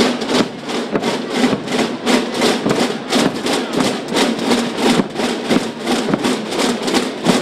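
Drums beat in a steady marching rhythm.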